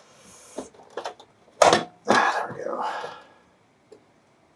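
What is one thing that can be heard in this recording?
A metal cover slides and scrapes off a radio case.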